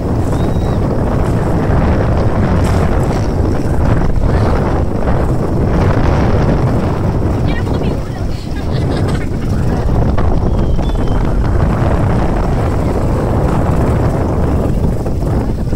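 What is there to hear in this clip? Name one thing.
An outboard motor runs with a steady low roar.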